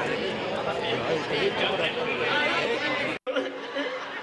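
A large outdoor crowd chatters loudly.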